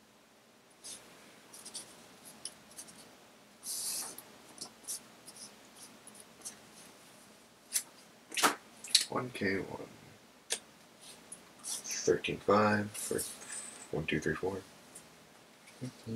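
Playing cards tap and slide softly on a play mat.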